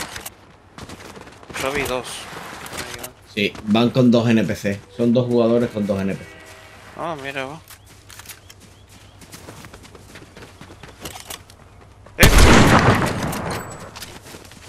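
Footsteps patter quickly on stone and grass.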